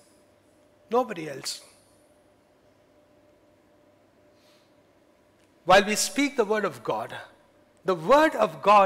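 A middle-aged man speaks calmly into a headset microphone, with pauses.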